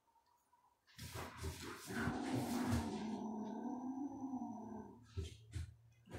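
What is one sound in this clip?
A kitten growls low and steadily close by.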